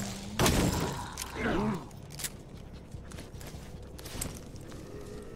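Heavy blows and magic blasts crash and boom in a fight.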